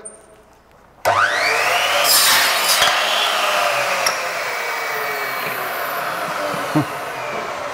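A power saw whines up to speed and cuts loudly through a board, then winds down.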